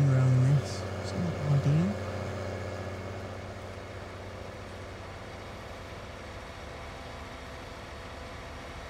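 A tractor engine hums steadily while driving.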